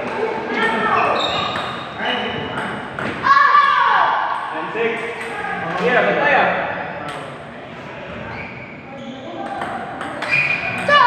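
A ping pong ball clicks against paddles and the table in a quick back-and-forth rally.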